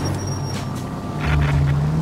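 Car tyres skid on asphalt.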